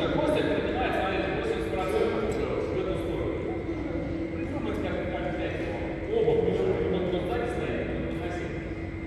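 A man and a woman talk casually nearby.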